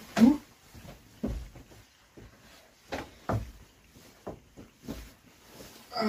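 A wooden bunk creaks and thumps as a man climbs onto it.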